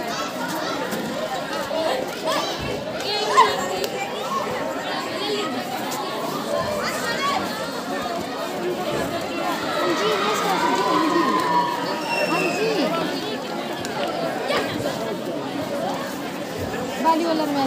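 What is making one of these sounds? Young women players shout and call out during the game.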